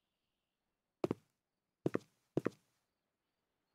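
Panels snap into place with quick double thuds.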